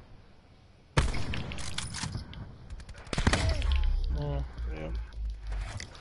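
A rifle fires loud sharp shots.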